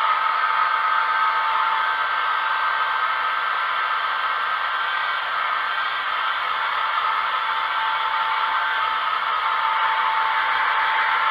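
A hair dryer blows with a steady whirring hiss.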